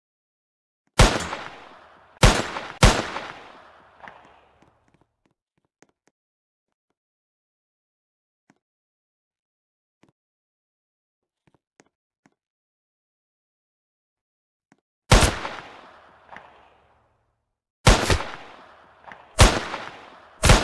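Loud gunshots ring out one at a time, each with an echoing tail.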